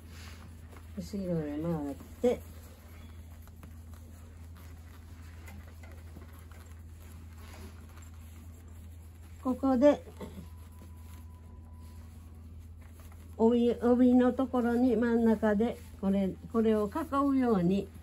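An elderly woman speaks calmly up close.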